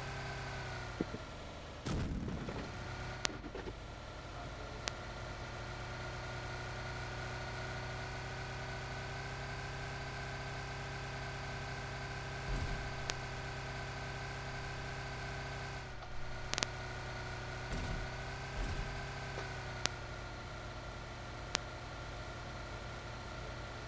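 A car engine hums steadily as a vehicle drives along.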